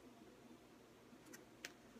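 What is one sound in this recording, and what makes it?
Paper rustles in a hand.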